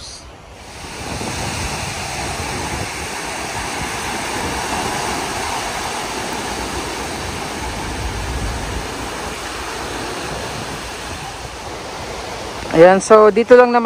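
Small waves wash and break on the shore.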